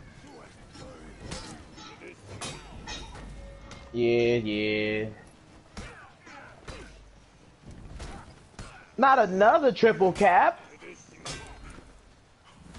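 Metal swords clash and clang repeatedly.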